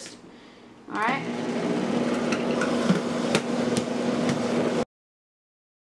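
A blender whirs loudly, grinding.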